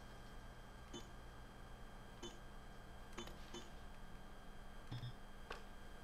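Keypad buttons beep short and high as they are pressed.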